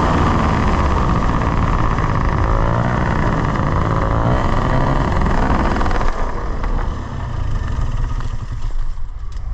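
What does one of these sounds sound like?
A propeller engine roars close by, then winds down.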